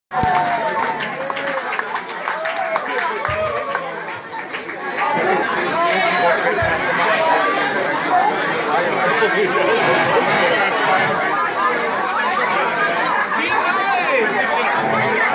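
A large crowd cheers, whistles and shouts in an echoing hall.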